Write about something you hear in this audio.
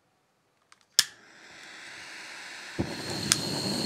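Gas hisses from a stove valve.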